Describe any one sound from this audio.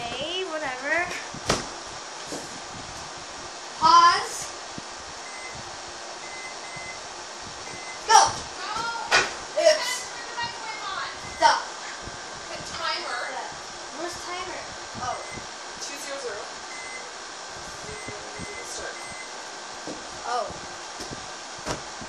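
A young child babbles and squeals nearby.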